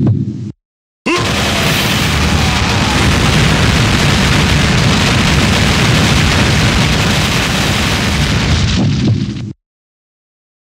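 Rapid explosive hit effects crash and roar continuously.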